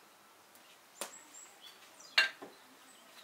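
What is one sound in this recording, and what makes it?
A ceramic bowl and dishes clink and knock as they are set down.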